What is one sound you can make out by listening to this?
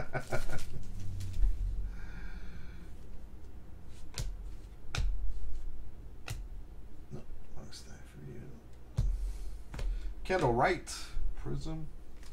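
Trading cards flick and rustle against each other.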